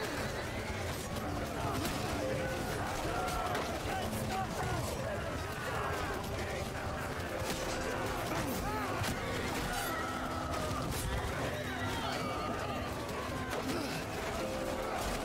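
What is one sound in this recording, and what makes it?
Metal weapons clash and shields thud in a large battle.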